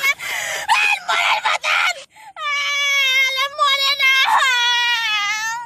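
A young woman sings in a high, loud voice close by.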